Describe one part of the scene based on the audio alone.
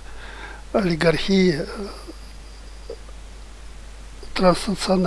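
An elderly man speaks with animation into a headset microphone, close by.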